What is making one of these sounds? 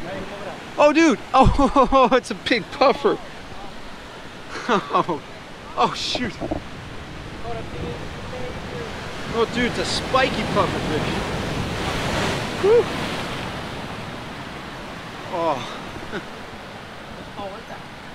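Waves wash and break against rocks.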